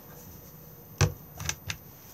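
A small metal knob clicks.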